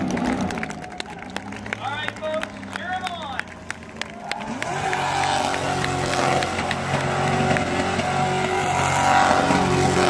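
A race car engine roars and revs loudly nearby.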